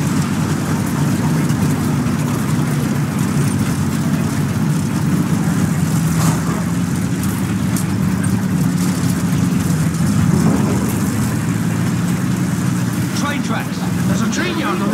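A tank engine rumbles steadily with a low drone.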